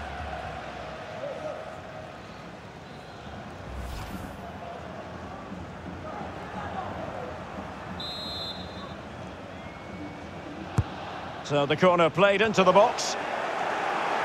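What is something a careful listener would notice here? A large crowd murmurs and cheers steadily in the distance.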